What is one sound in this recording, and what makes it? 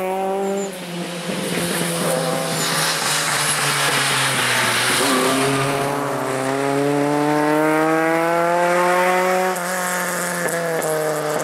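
Another rally car engine roars past, climbing in pitch as it accelerates.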